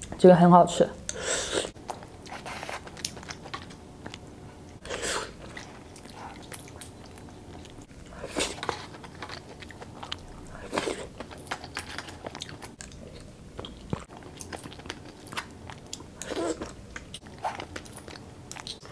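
A young man chews food wetly and smacks his lips close to a microphone.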